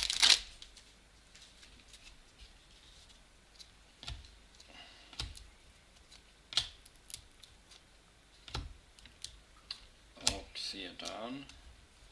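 Trading cards slide and tap against one another in a hand.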